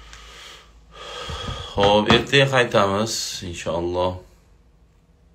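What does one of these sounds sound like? A middle-aged man speaks close to a phone microphone.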